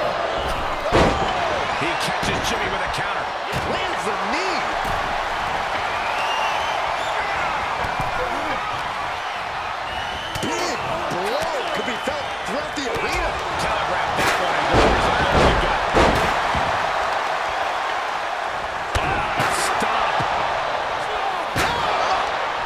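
Heavy thuds of bodies hitting a wrestling mat ring out now and then.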